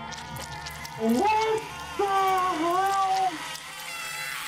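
A young man sings out loudly in a drawn-out, wavering voice close to a microphone.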